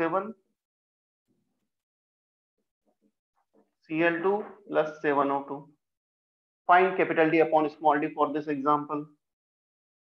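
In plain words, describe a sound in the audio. A young man speaks calmly, explaining, heard close through a microphone.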